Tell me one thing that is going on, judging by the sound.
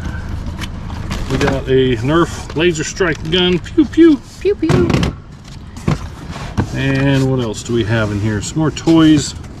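Items rustle and clatter in a cardboard box.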